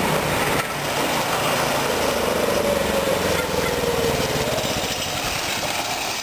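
A small go-kart engine buzzes and revs as it drives closer.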